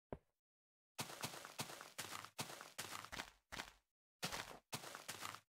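Footsteps thud steadily on grass.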